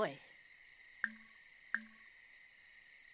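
A game menu gives two short soft clicks.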